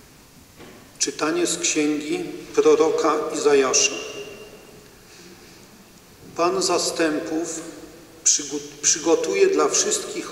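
An elderly man reads aloud calmly through a microphone in a large echoing hall.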